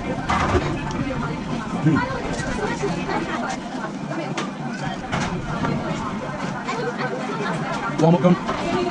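A young man talks casually up close.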